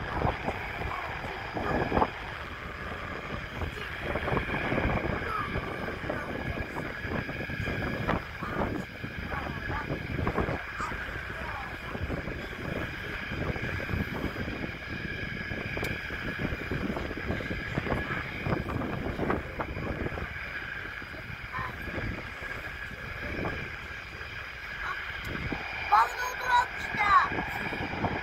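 Wind blows and buffets outdoors across open ground.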